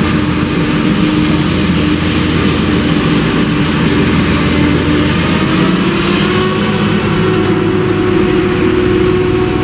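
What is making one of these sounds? A forage harvester roars steadily as it cuts maize stalks close by.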